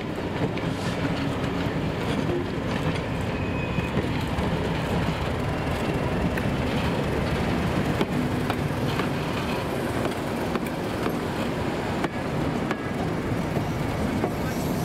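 Steel wheels clank and squeal on the rails.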